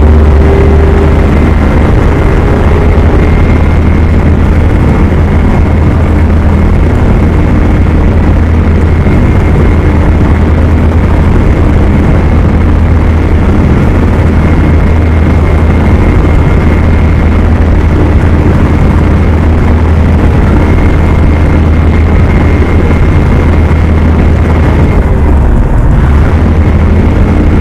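Tyres crunch on a dirt road.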